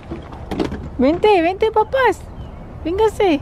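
A toddler squeals and babbles excitedly nearby.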